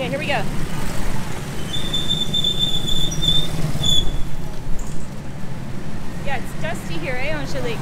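A motorbike engine putters past.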